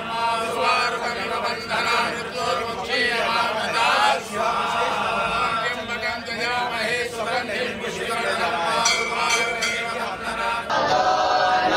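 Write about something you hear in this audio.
A man chants a prayer in a steady, sing-song voice.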